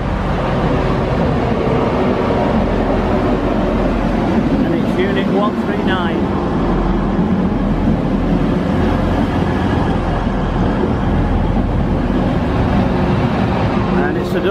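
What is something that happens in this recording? A diesel train rumbles into the station and passes close by.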